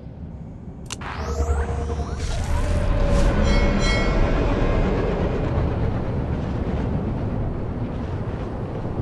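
A futuristic hover bike engine hums and roars.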